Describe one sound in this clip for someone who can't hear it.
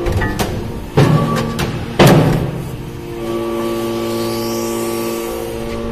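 A hydraulic press ram clanks as it pushes down into metal chips.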